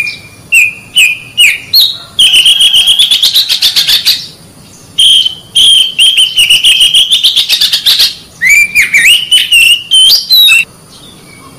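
A songbird sings loud, clear whistles and rapid trills close by.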